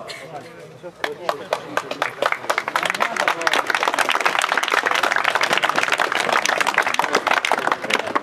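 A crowd of spectators applauds.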